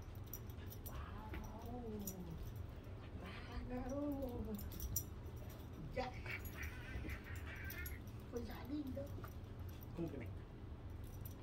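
A man talks to a dog in a high, coaxing voice close by.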